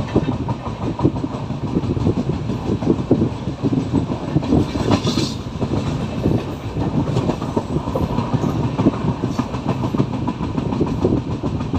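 Wind rushes past the moving train.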